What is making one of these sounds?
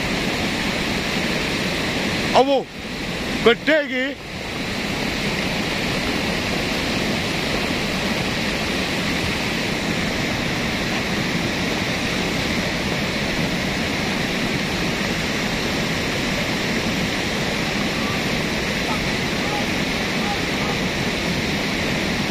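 A fast muddy river rushes and roars steadily.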